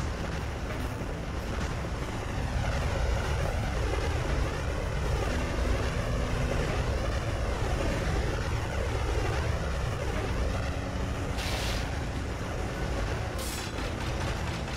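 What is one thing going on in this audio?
Upbeat electronic game music plays steadily.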